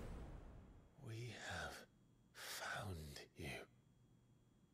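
A young man speaks quietly into a microphone.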